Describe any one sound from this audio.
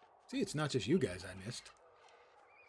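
An elderly man speaks briefly and calmly into a microphone.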